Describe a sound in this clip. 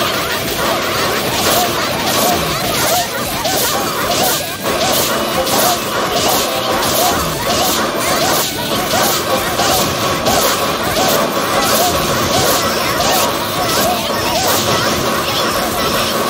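Game battle effects crackle and burst repeatedly.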